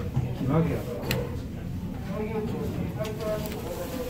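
A finger presses an elevator button with a soft click.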